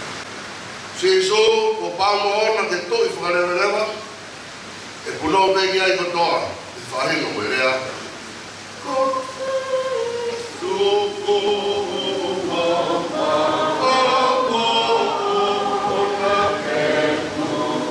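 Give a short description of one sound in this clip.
A man speaks into a microphone through loudspeakers, reading out in an echoing room.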